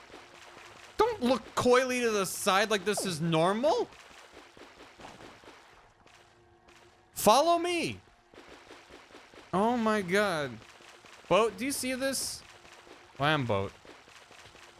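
A man speaks with animation through a close microphone.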